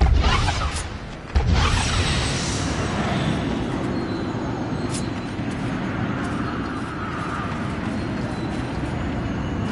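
A magic portal crackles and hums.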